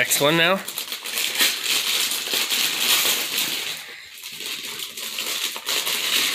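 Wrapping paper crinkles and tears as a gift is unwrapped.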